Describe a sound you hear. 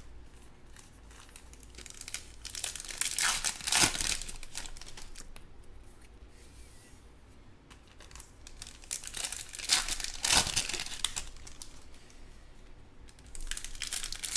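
Stiff trading cards shuffle and flick against each other.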